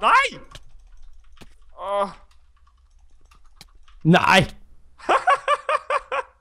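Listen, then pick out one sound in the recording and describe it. A young man talks and exclaims excitedly into a close microphone.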